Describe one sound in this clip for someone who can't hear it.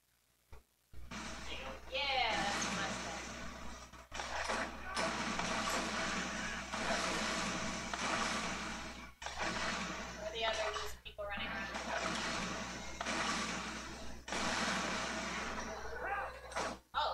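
Game gunfire and explosions rattle.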